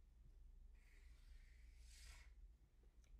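A marker squeaks briefly on paper.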